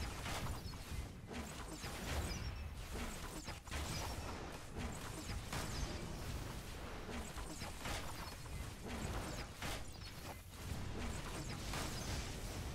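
Blasts and impacts thud repeatedly.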